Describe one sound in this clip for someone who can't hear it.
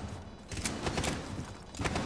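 A rifle magazine is swapped.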